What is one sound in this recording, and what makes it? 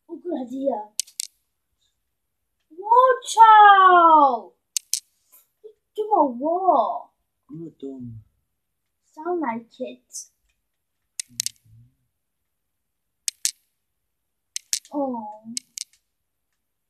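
Short clicking sounds come from a video game as blocks are placed.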